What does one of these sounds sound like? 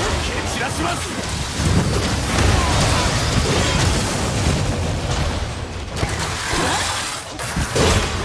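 Fiery explosions crackle and burst.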